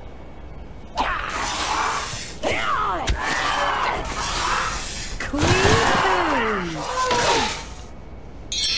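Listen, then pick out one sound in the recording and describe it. A giant insect creature shrieks with wavering, gliding cries.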